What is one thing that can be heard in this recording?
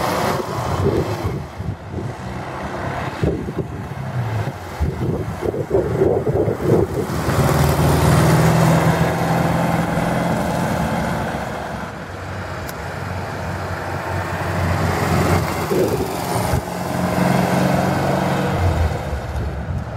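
A small air-cooled car engine putters and revs as the car drives by.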